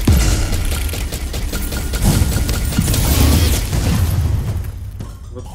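Energy blasts crackle and explode loudly.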